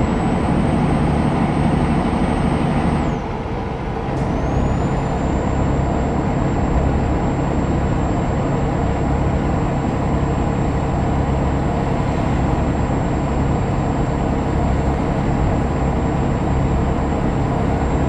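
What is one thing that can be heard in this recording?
A truck engine drones steadily, dipping briefly as it shifts gear.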